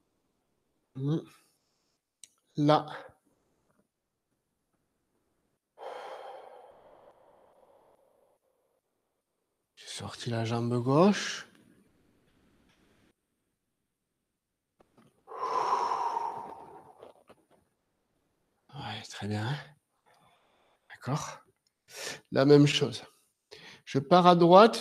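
An elderly man speaks calmly in short phrases, close by, with pauses between them.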